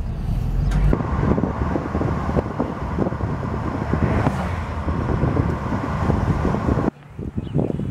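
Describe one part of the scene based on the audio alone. Tyres hum on a road as a car drives along.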